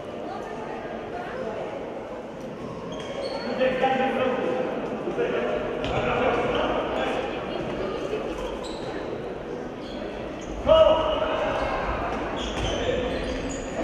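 Sports shoes squeak on a hard floor in a large echoing hall.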